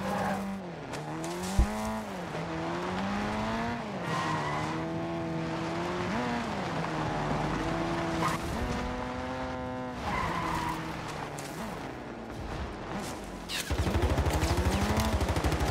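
A small buggy engine revs up and down, rising and falling in pitch.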